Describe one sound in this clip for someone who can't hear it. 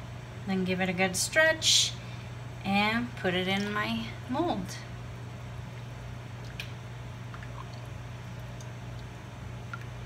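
A spoon stirs liquid in a metal pot.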